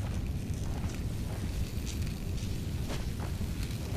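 Electric sparks crackle and fizz close by.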